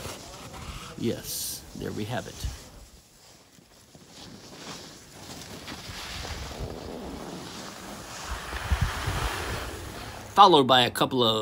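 Skis scrape and hiss across hard snow.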